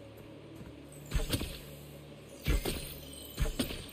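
An arrow is shot from a bow with a sharp twang.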